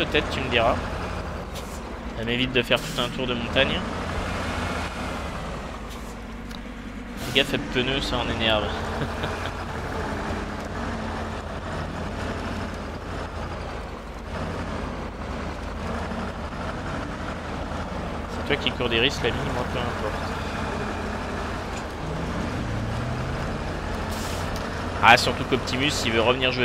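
A truck engine rumbles steadily as the truck crawls over rough ground.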